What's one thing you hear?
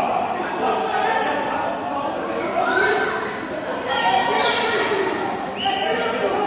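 Children shout to each other while playing.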